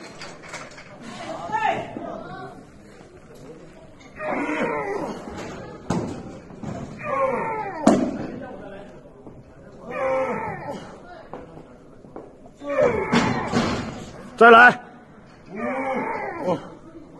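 A young man grunts and groans loudly with effort.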